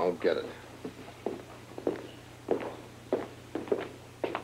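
Footsteps walk away across a hard floor.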